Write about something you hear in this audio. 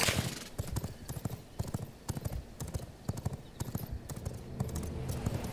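Footsteps patter quickly over rough ground.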